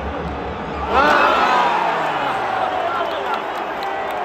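A stadium crowd erupts in a loud cheer.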